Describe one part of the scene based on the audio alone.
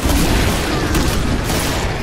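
Guns fire in loud, rapid bursts.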